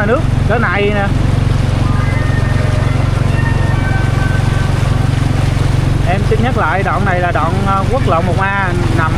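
Floodwater splashes and swishes around a car's wheels.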